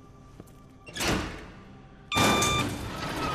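A button clicks.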